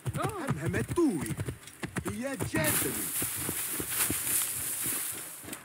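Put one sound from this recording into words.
A horse's hooves clop on the ground at a steady trot.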